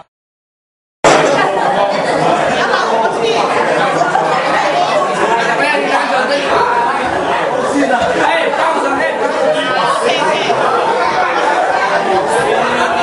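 A crowd of men and women chatter and laugh in a busy room.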